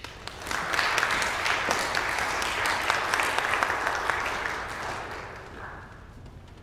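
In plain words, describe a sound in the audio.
An audience applauds in a large echoing hall, then the applause fades.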